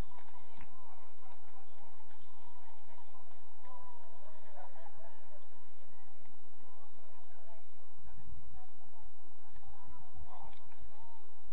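Distant players shout to each other across an open field outdoors.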